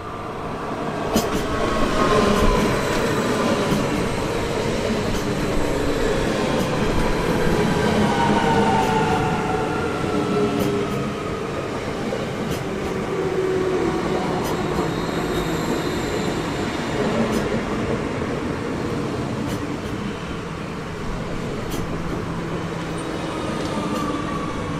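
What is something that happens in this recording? Train brakes squeal with falling, whining tones.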